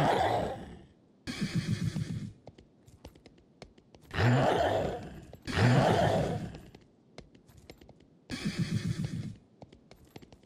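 A horse snorts sharply.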